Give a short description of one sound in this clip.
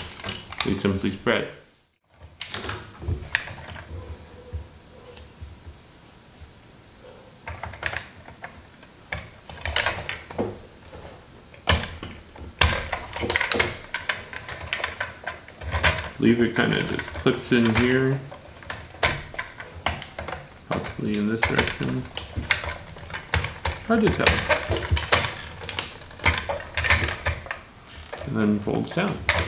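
Plastic toy parts click and snap together.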